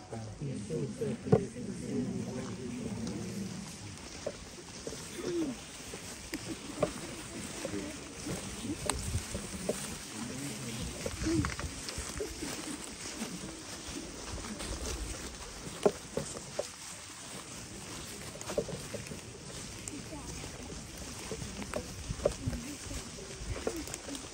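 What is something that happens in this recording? A crowd of men and women murmurs and talks quietly outdoors.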